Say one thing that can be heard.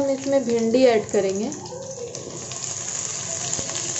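Chopped vegetables tumble into a hot pan.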